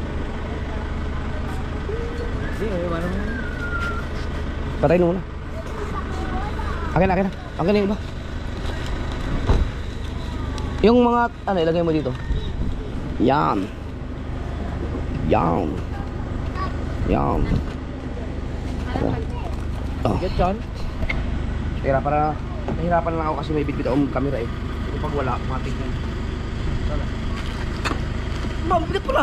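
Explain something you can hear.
Paper bags rustle as they are handled.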